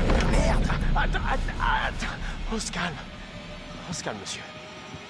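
A young man shouts urgently.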